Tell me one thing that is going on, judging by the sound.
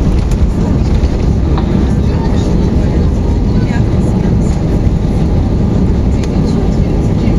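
Jet engines roar loudly in reverse thrust as an airliner slows on the runway.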